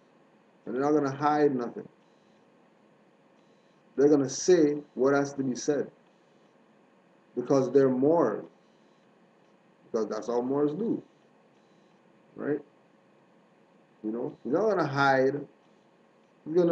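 A man speaks calmly in short phrases, close to a microphone.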